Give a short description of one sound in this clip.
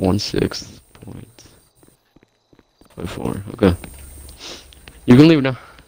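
Footsteps run and walk on pavement.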